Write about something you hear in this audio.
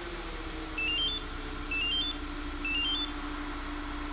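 A remote key fob chirps a quick rising three-note beep, three times in a row.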